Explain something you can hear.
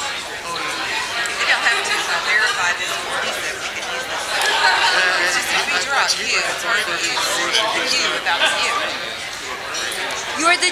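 Many men and women chatter all at once in a large, busy room.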